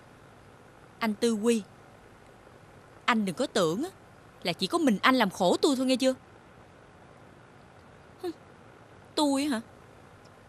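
A young woman speaks sharply to herself, close by.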